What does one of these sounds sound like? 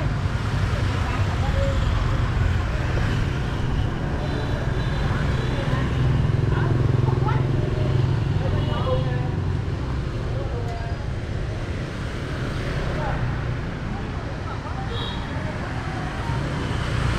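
Motor scooters hum past on a street.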